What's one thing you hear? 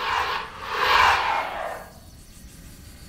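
A laser beam whooshes past.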